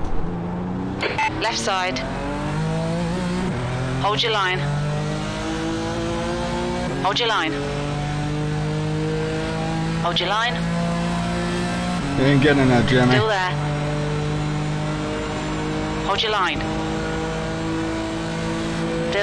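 A racing car engine roars, its pitch climbing and dropping with each gear change.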